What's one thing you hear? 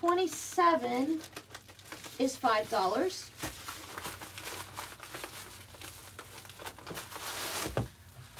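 A plastic mailer crinkles as it is handled.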